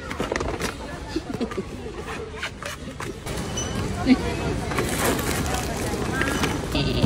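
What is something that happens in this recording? A shopping cart rattles as it rolls.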